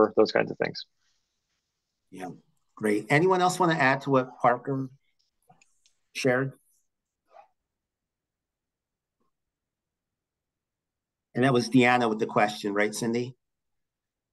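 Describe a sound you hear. A middle-aged man speaks calmly through an online call microphone, with pauses.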